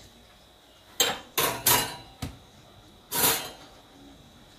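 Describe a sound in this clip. Metal clicks and clanks against a coffee machine.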